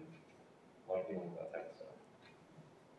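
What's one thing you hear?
A young man speaks briefly into a handheld microphone.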